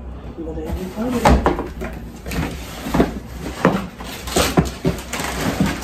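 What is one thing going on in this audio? A cardboard box rustles and thumps as it is handled.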